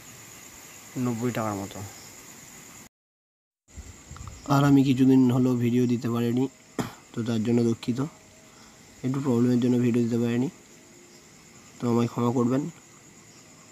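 A man speaks calmly and clearly, close up.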